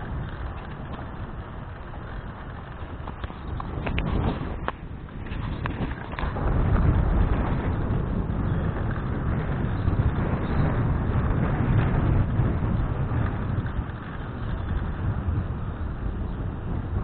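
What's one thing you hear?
Wind rumbles against a moving microphone outdoors.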